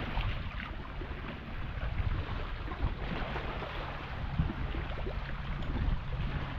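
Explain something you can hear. Small waves lap gently against rocks on the shore.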